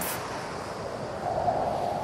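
Water splashes as people wade through a flood.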